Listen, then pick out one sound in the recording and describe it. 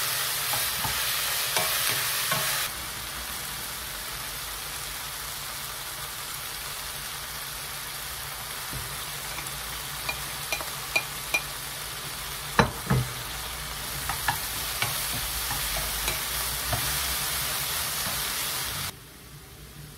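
Vegetables sizzle and crackle in a hot pan.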